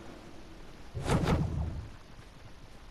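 A heavy thump sounds on landing.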